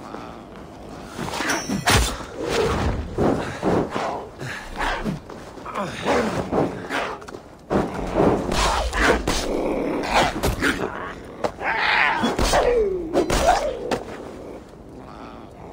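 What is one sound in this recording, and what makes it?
Heavy blows strike with sharp thuds.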